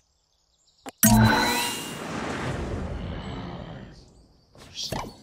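A loud game jingle bursts out and slowly fades.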